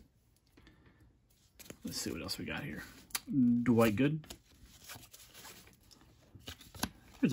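Trading cards rustle and slide against each other as they are flipped through.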